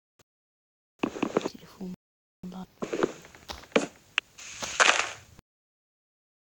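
Dull knocks sound as wood is struck repeatedly.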